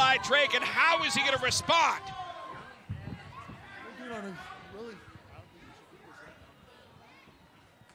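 A crowd murmurs and chatters in the background.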